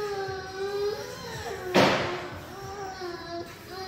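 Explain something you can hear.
A baby squeals and babbles nearby.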